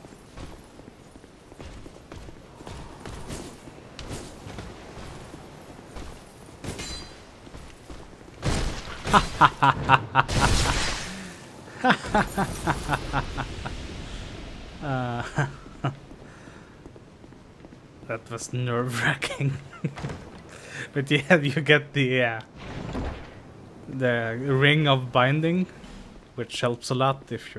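Footsteps clatter quickly on stone.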